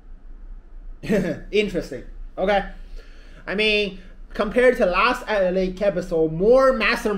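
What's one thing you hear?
A young man talks animatedly close by.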